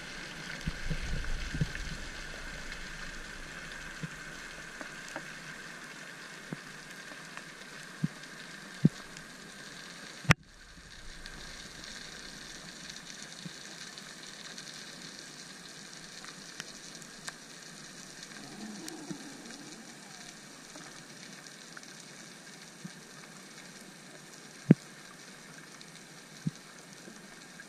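Water hisses and crackles softly all around, muffled as if heard underwater.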